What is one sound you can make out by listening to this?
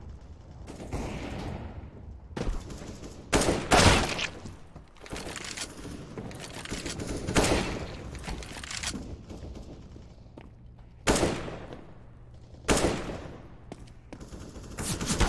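Footsteps thud on hard ground at a run.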